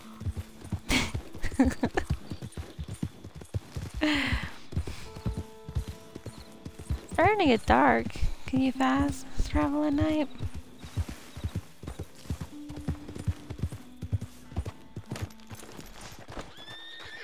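A horse gallops with quick, heavy hoofbeats on soft ground.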